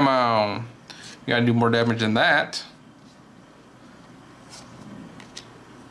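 Trading cards rustle and flick in hands.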